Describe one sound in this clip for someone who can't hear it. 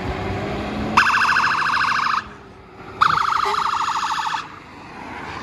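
A fire engine sounds two loud blasts of its horn.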